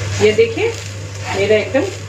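A metal spatula scrapes across a hot pan.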